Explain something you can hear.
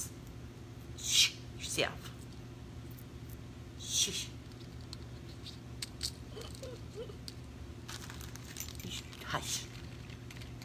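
Metal earrings jingle and clink.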